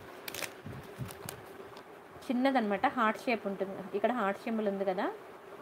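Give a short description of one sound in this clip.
A paper card rustles between fingers.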